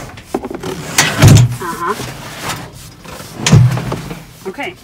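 A seat thumps and clunks as it is moved.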